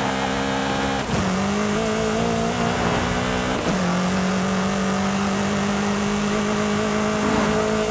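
A car engine roars at high speed, dropping in pitch at each gear change.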